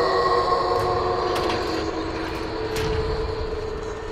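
A car trunk lid creaks open.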